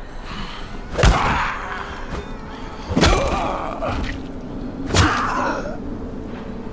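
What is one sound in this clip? Heavy blows thud wetly into a body.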